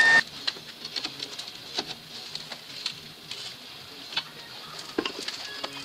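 Hot metal clanks as it is bent in a vise.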